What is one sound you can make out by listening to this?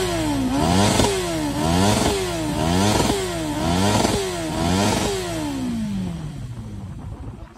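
A motorcycle engine revs hard again and again, close by.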